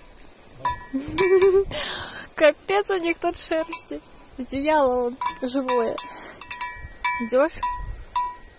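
A sheep bleats close by.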